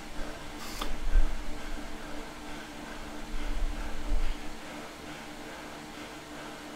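An indoor bike trainer whirs steadily.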